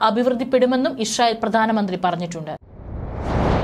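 A young woman speaks clearly into a microphone, like a news presenter.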